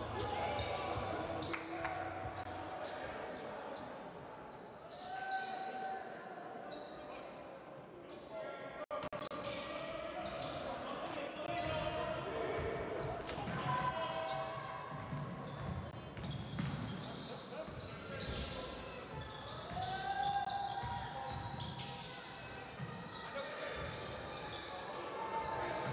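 A crowd murmurs and cheers in an echoing hall.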